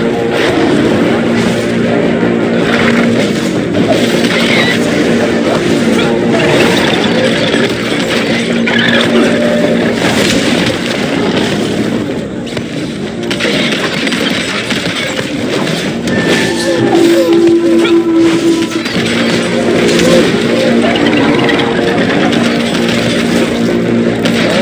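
Weapons strike and clash in a fight.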